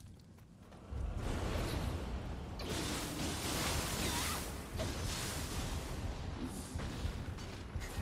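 Fiery blasts burst with loud roars.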